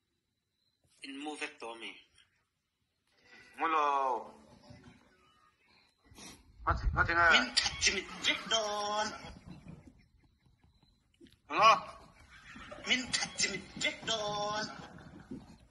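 A man talks with animation through a phone loudspeaker.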